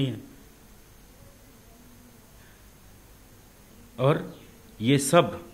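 A middle-aged man speaks calmly and closely into a microphone, pausing between phrases.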